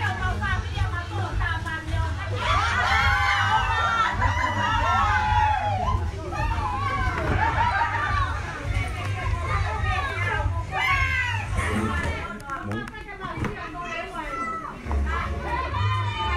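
A crowd of men and women talk and call out loudly nearby.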